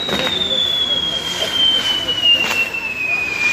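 Firecrackers pop now and then.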